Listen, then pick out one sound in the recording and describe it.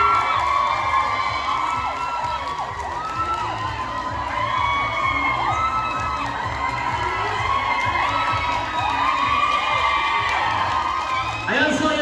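A large crowd of children chatters and shouts all around.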